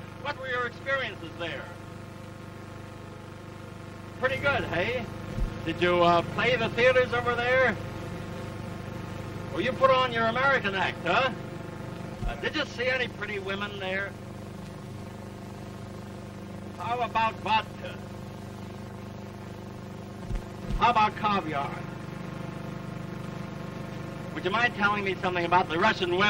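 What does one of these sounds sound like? A man speaks calmly, heard through an old, humming recording.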